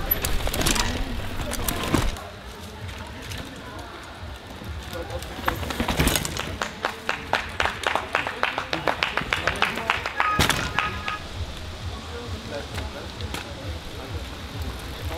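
A mountain bike rolls close by over a dirt trail, tyres crunching.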